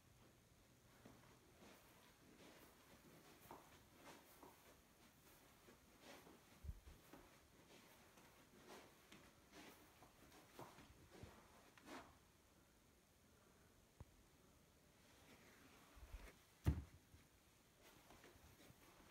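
Footsteps thud softly on a carpeted floor.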